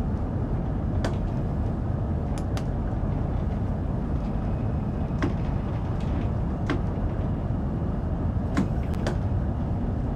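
Switches in a train cab click now and then.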